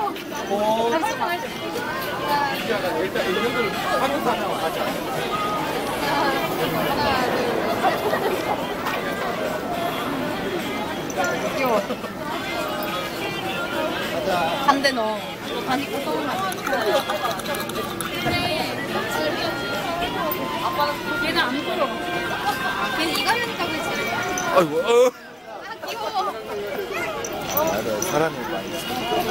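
Several adults talk and chatter close by.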